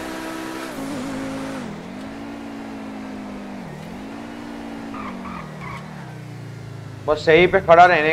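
A sports car engine hums and revs.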